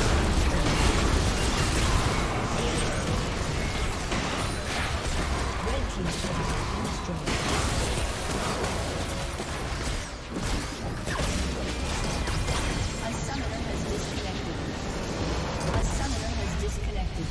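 Magic blasts and sword clashes crackle in a rapid, busy battle.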